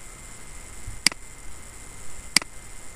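A computer mouse clicks sharply.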